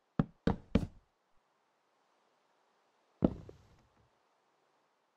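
Blocks thud as they are placed, one after another.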